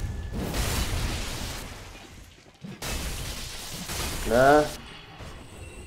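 Heavy sword blows swish and crash.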